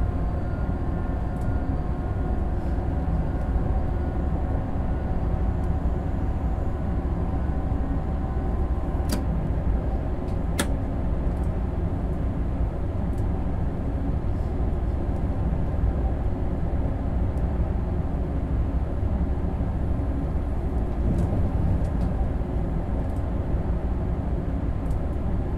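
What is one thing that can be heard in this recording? A train rumbles steadily along the tracks at speed.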